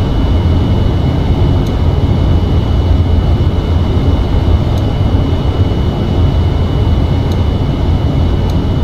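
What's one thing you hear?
Jet engines rumble low and steady.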